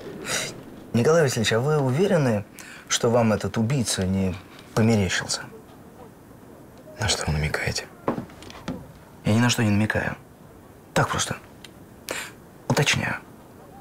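A middle-aged man speaks calmly with measured emphasis, close by.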